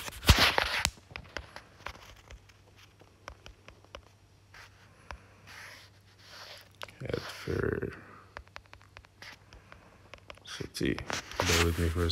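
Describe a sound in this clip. Soft keyboard taps click on a phone.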